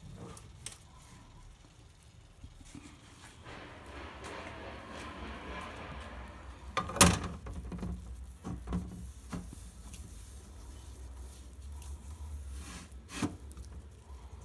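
Plastic parts knock and clatter.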